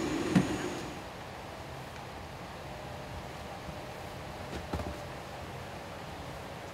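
A low steady hum fills an aircraft cabin.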